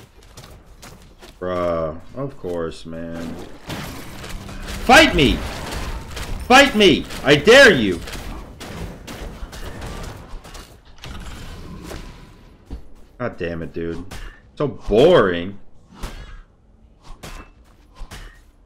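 Game weapons clash and magic effects whoosh in quick bursts.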